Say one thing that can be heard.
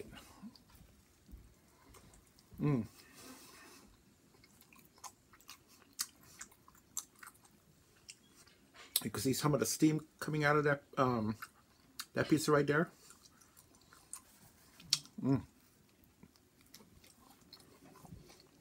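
A man chews food with his mouth full.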